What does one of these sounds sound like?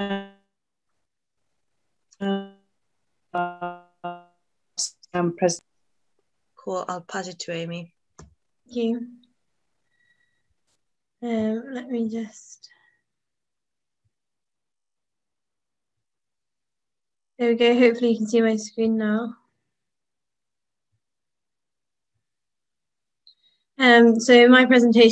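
A young woman speaks calmly over an online call, in short phrases with pauses.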